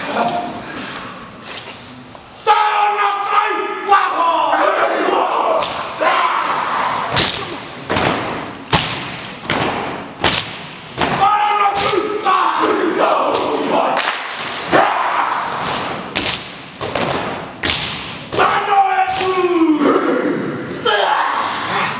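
A group of young men slap their bodies and stamp their feet in rhythm.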